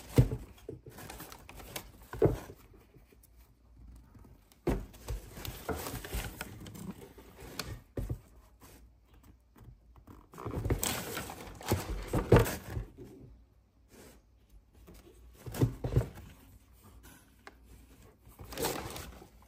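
A shoe's leather creaks and rubs as a hand handles it.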